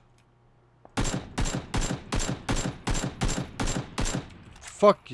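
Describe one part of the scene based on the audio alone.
Rapid gunshots fire in quick succession.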